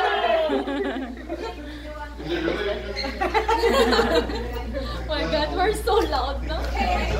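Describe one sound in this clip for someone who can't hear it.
Several young women chatter and laugh in the background.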